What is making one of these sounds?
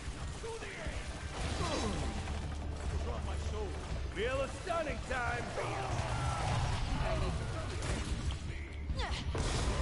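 Game sound effects of magic blasts and impacts ring out.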